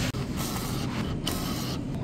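A bill feeds into a machine with a soft whir.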